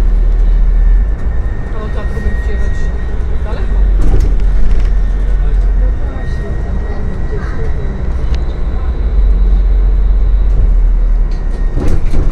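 A hybrid city bus drives along, heard from inside behind the driver.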